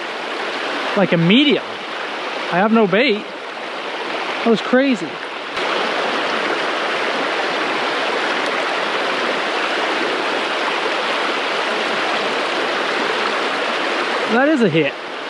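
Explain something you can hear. Water rushes and splashes steadily over rocks in a stream.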